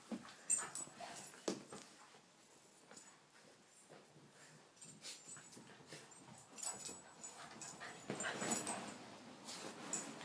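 Small dogs scuffle and play on a soft rug, rustling and thumping.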